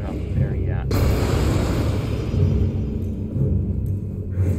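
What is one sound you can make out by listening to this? A magical blast roars and crackles with a rushing whoosh.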